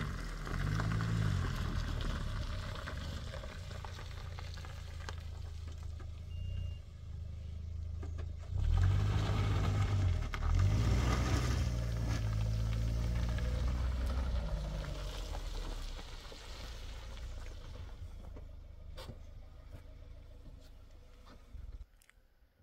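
Tyres crunch and slip on wet dirt and gravel.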